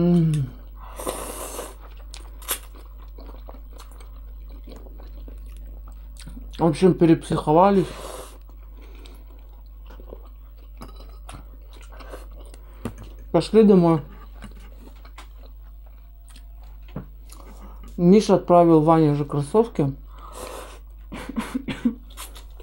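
A boy slurps noodles.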